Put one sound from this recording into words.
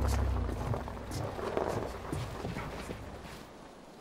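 A person thumps into the bed of a pickup truck.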